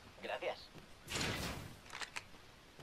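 A metal door slides open.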